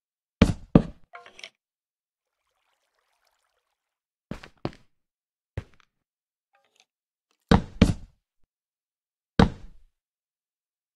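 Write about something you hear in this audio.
Short dull thuds sound as wooden blocks are placed.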